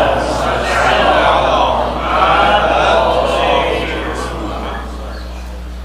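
A man chants loudly into a microphone, heard through a loudspeaker.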